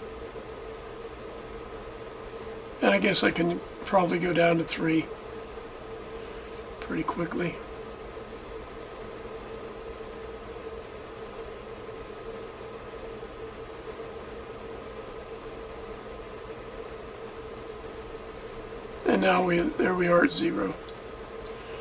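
A transformer hums steadily.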